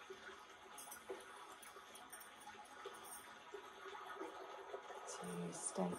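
A woman speaks softly nearby.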